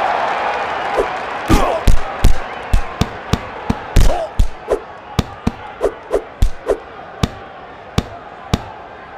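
Gloved punches land with quick, heavy thuds.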